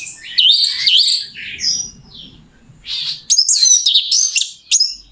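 A small bird sings loud, rapid, shrill chirps and trills close by.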